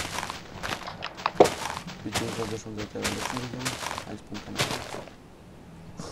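Blocks of leaves crunch and break with quick, repeated thuds.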